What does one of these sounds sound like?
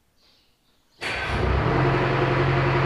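A car engine starts up.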